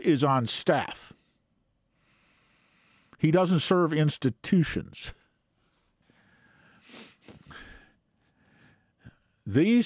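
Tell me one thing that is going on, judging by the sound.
An elderly man speaks calmly and closely into a microphone, pausing between phrases.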